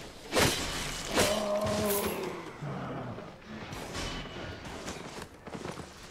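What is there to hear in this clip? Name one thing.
Magic spell effects whoosh and chime in bursts.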